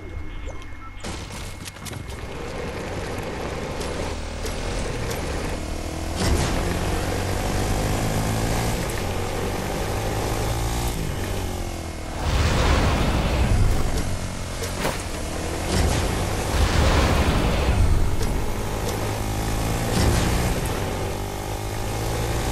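A small engine hums and revs as a quad bike drives over grass.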